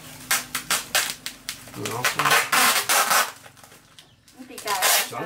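Packing tape rips off a roll in loud, screechy pulls.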